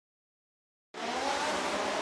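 Many racing car engines roar together.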